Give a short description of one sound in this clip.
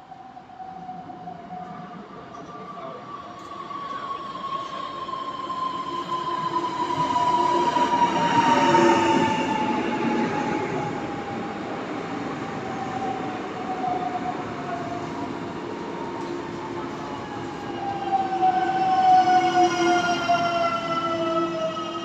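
An electric train approaches and rolls slowly in, its motors whining and falling in pitch.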